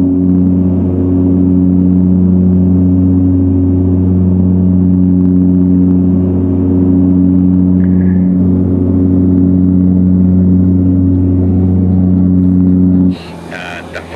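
A propeller plane's engines drone loudly and steadily from inside the cabin.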